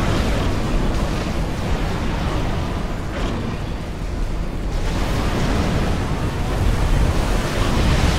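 Explosions and gunfire rumble in a battle.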